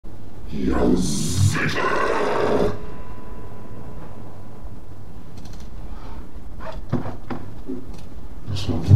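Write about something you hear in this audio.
A man speaks with animation close to a webcam microphone.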